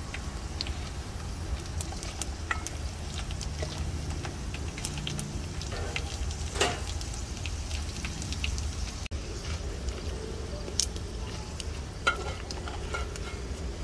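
A ladle scrapes against a metal wok.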